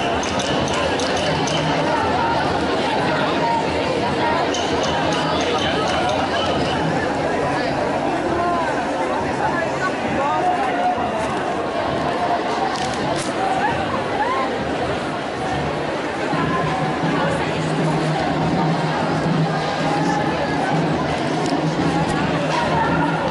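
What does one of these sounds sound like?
A large crowd of men and women chants and shouts outdoors.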